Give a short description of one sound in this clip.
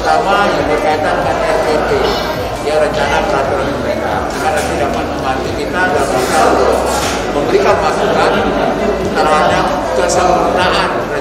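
A middle-aged man speaks calmly into several close microphones, slightly muffled by a face mask.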